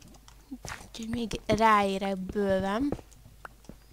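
A young woman speaks in a drawn-out, sing-song voice close to a microphone.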